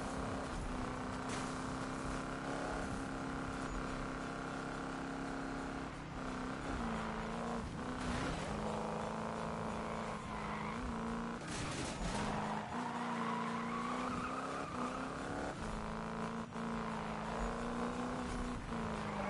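A car engine roars steadily, its pitch shifting as it changes gear.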